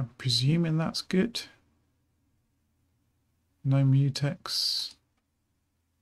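A man speaks casually and close into a microphone, in short bursts.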